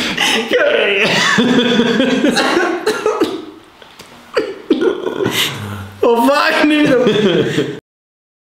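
A young man talks and laughs with animation close by.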